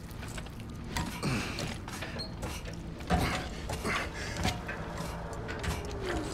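Heavy armoured boots clank on metal ladder rungs.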